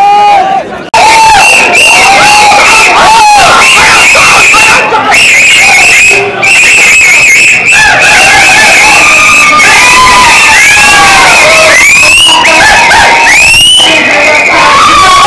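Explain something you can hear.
Young men whistle and shout close by.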